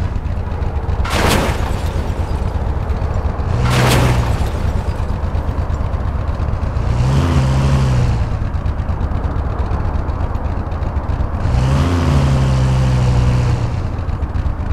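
A car engine hums steadily throughout.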